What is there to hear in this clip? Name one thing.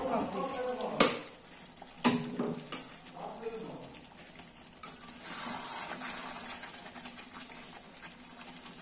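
A metal spatula scrapes and clinks in a wok.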